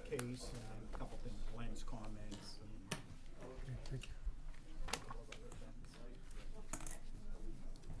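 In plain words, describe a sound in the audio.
Footsteps walk across the floor.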